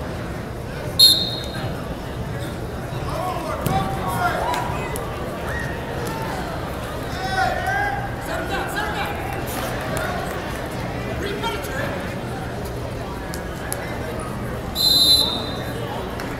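A referee's whistle blows sharply, twice.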